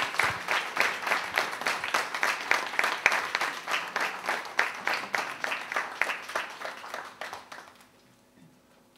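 An audience applauds in a room, and the clapping fades away.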